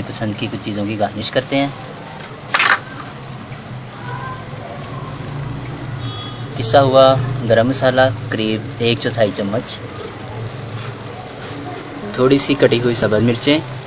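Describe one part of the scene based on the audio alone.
Food sizzles quietly in a hot pan.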